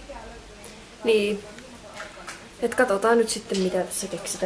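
A young woman talks casually and close up.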